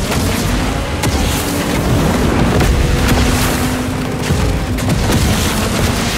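Electric weapons crackle and zap.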